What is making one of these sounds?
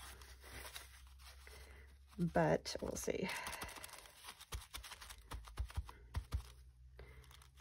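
A tissue rubs and dabs softly on paper, with a faint rustle.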